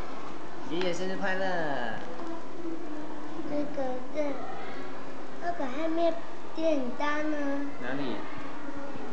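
A young boy speaks up close in a high voice.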